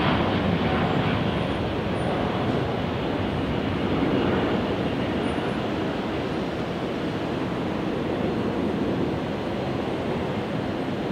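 A jet airliner roars loudly as it takes off and climbs away.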